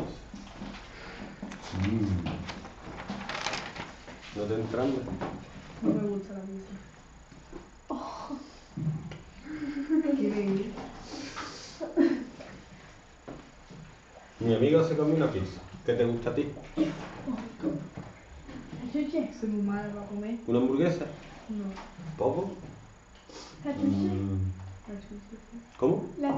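A man speaks calmly and steadily, as if explaining, close by.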